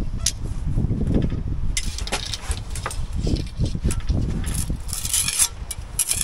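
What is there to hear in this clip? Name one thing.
A metal tool scrapes and taps against brick.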